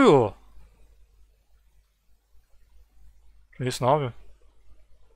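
A young man shouts briefly into a close microphone.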